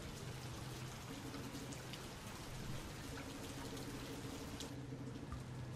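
Rain falls steadily and softly.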